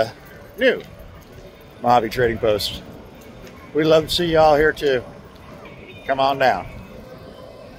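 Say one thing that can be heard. A middle-aged man speaks animatedly close to a microphone.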